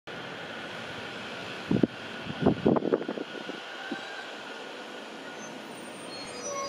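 A train rolls slowly alongside a platform, its wheels thumping over the rail joints.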